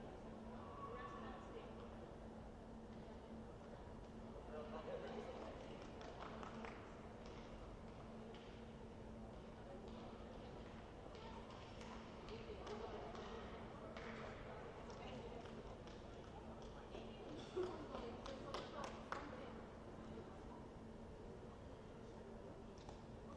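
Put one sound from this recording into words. Young players' voices chatter and call out across a large echoing hall.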